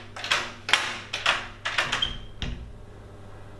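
A bicycle rattles and clicks as it is moved indoors.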